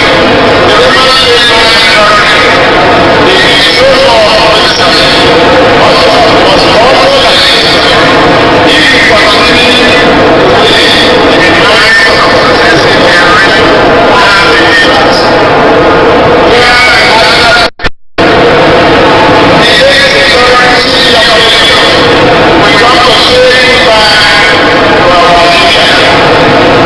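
A man reads out a speech through a loudspeaker.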